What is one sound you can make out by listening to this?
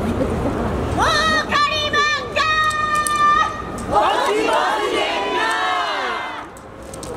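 A woman sings out in long, drawn-out calls.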